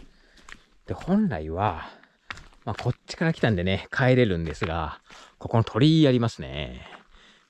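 A man speaks close by with animation.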